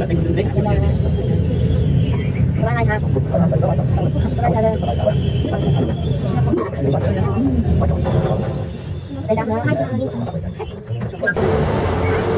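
A lift motor hums and rumbles steadily while climbing.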